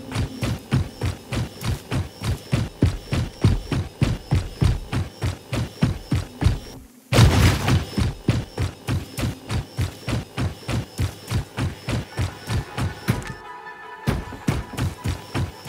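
Footsteps thud quickly and steadily on rough ground as someone runs.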